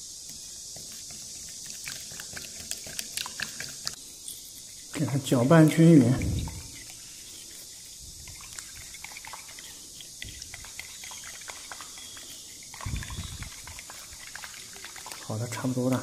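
A spoon stirs and clinks against a ceramic bowl.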